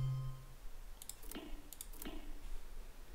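Soft interface clicks sound as game menus open and close.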